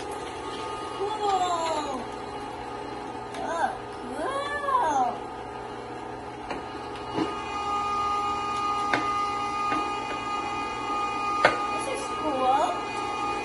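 A young boy speaks with animation close by.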